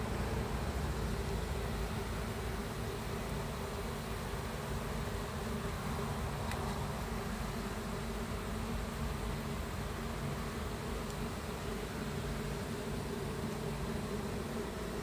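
Many bees buzz steadily close by.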